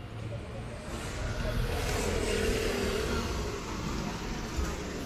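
A jeepney engine rumbles past.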